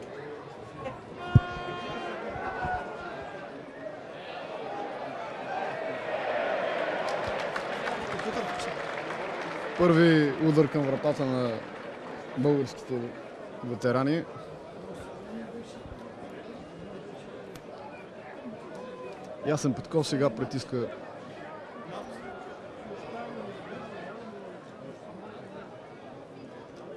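A large crowd murmurs and cheers outdoors in a stadium.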